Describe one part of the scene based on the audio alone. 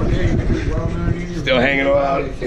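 A man speaks up close with animation.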